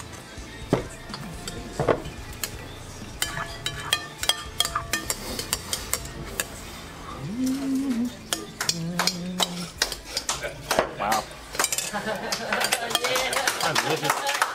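Spoons clink and scrape against glass bowls.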